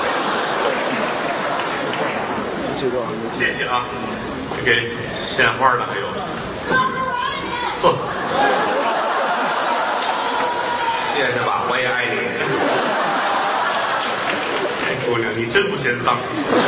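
A middle-aged man speaks with animation through a microphone in a large hall.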